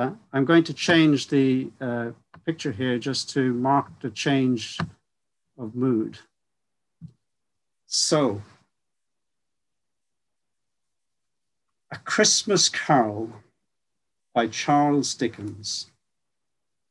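An older man speaks calmly through an online call, with pauses.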